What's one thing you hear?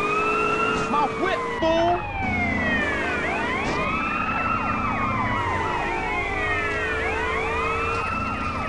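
A police siren wails continuously, rising and falling.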